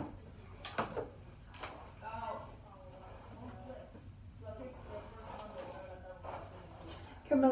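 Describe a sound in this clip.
A brush swishes through hair.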